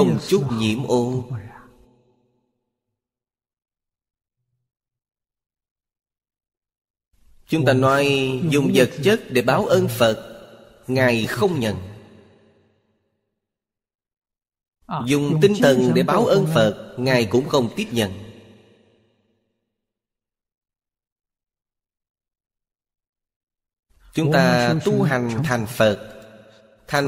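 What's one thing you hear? An elderly man speaks calmly into a close microphone, in measured phrases with long pauses.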